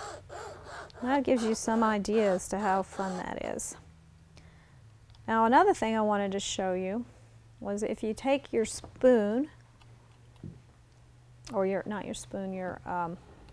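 A middle-aged woman speaks calmly into a microphone, close by.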